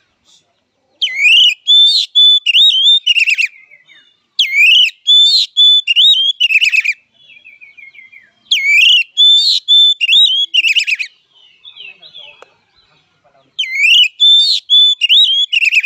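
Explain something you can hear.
A songbird sings loud, clear whistling phrases close by, in repeated bursts.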